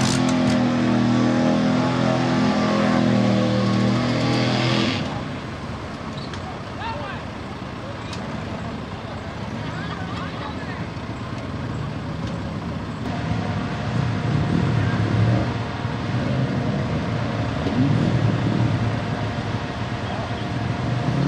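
Mud splashes and squelches under spinning tyres.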